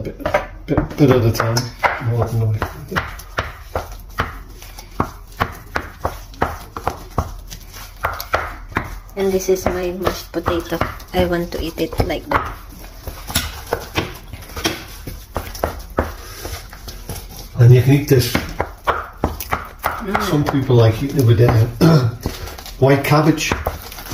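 A masher thumps and squelches through soft potatoes in a metal pot.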